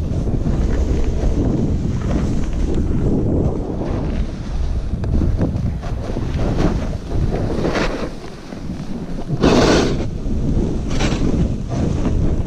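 Wind rumbles against a nearby microphone.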